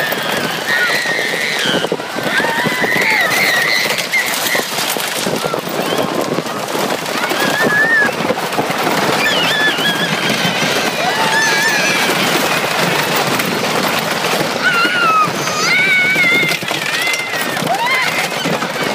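Riders scream together on a fast ride.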